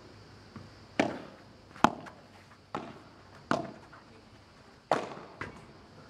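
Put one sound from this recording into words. Padel rackets strike a ball back and forth with sharp pops.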